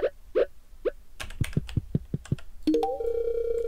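Footsteps tap lightly on a wooden floor.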